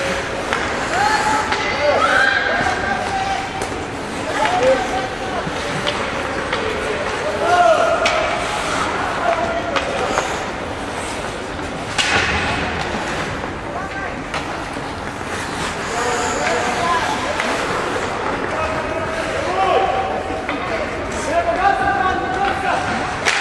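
Sticks click against the puck.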